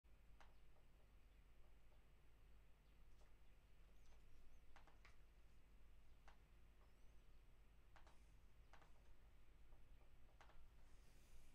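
Fingers tap and click on a laptop trackpad.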